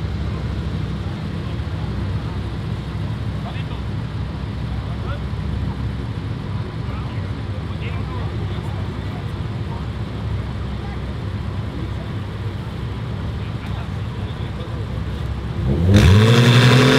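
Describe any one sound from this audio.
Car engines idle with a low, steady rumble.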